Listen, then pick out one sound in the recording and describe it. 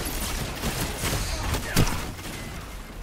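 An energy weapon fires with crackling electric zaps.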